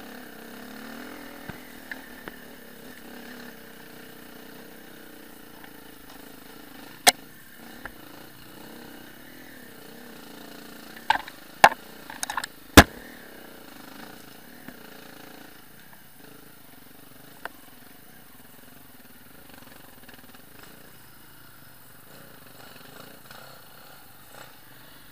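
A motorbike engine hums and putters at low speed.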